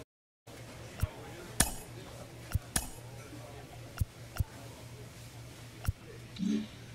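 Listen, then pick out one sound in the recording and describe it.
Short menu clicks sound as selections change.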